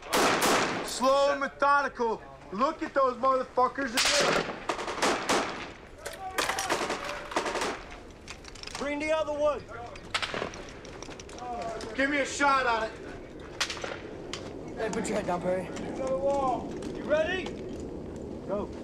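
Men shout loudly to each other.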